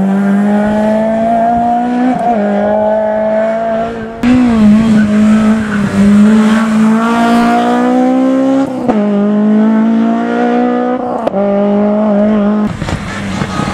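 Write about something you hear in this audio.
A rally car engine revs hard and climbs through the gears as the car accelerates away.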